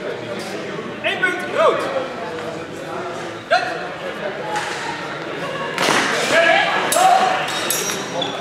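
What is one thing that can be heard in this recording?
A man shouts commands loudly in a large echoing hall.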